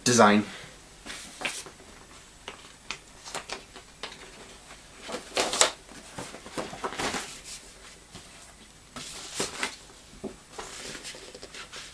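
Paper sleeves rustle and slide as records are handled.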